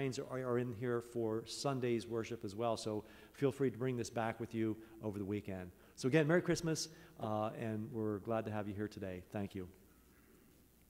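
A man chants in a steady sung voice through a microphone in a large echoing hall.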